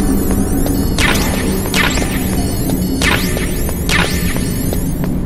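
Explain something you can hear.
A short electronic chime sounds as an item is picked up.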